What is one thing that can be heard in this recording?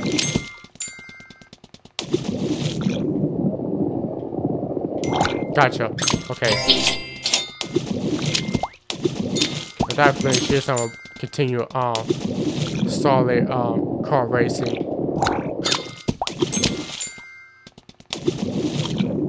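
Bright game chimes ring out again and again.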